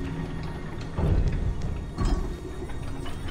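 A heavy stone block lands with a deep thud.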